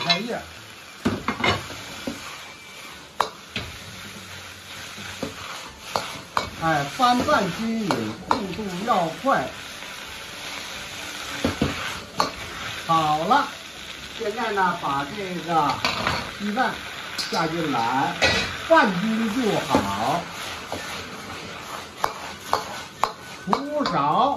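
A metal ladle clanks and scrapes against a wok.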